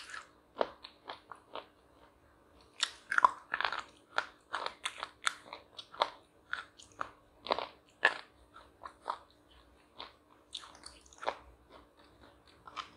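A young woman crunches and chews food close to the microphone.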